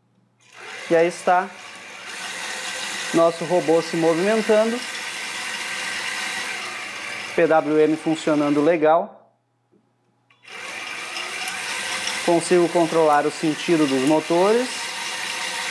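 Small servo motors whir in short bursts that rise and fall in pitch.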